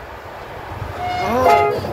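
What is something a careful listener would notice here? A train horn blares loudly with several tones.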